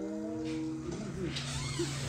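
A man mumbles through a full mouth.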